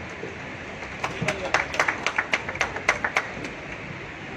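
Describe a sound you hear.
A crowd claps in quick bursts.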